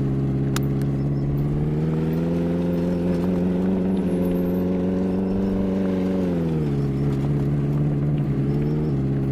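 A car engine hums steadily, rising in pitch as it speeds up and then dropping as it slows.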